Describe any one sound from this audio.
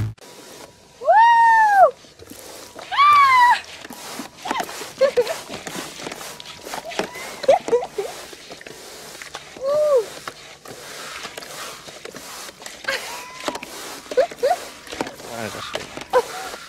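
A young woman squeals and cries out in short bursts.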